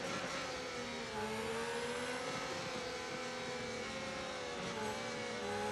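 Another racing car engine whines nearby as it is passed.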